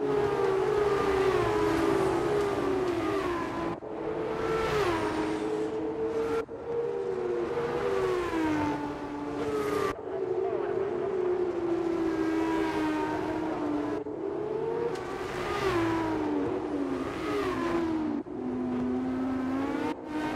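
A racing car engine screams at high revs, rising and falling as the gears shift.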